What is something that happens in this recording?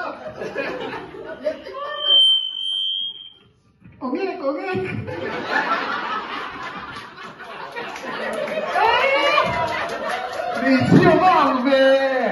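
A group of men and women sing together.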